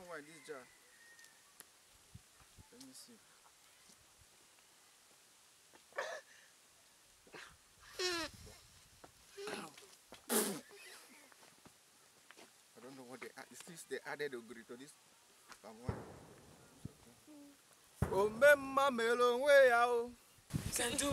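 A young man speaks with feeling, close by.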